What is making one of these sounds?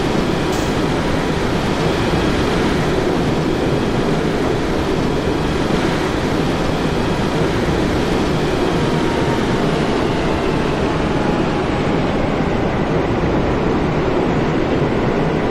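Train wheels roll and clatter along the rails.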